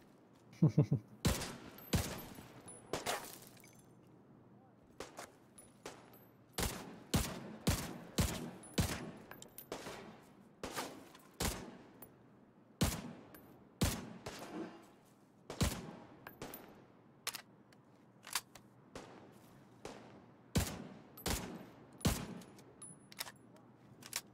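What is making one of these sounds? Gunshots crack in single and quick bursts, ringing off nearby walls.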